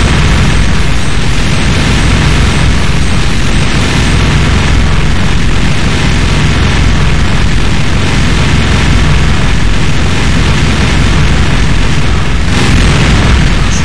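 Explosions rumble and crash loudly.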